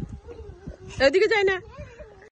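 A young girl squeals happily up close.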